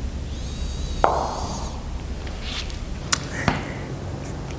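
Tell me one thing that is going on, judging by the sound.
Billiard balls click against each other.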